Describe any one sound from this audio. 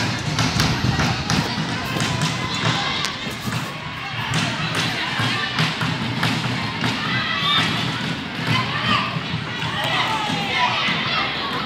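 Children shout to each other across an open field.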